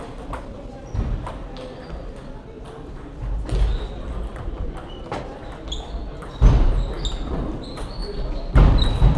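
A table tennis ball clicks back and forth against paddles and a table.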